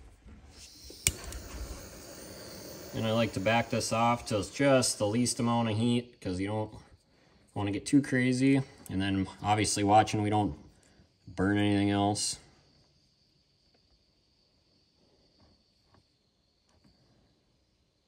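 A small gas torch hisses steadily.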